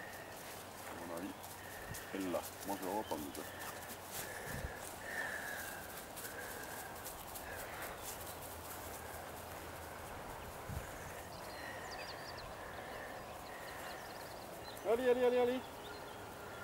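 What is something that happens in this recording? An older man calls out to a dog in short bursts.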